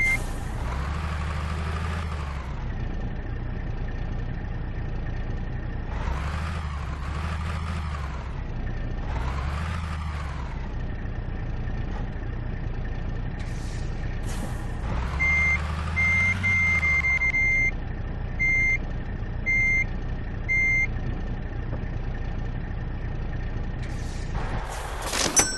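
A truck engine rumbles steadily, revving up now and then.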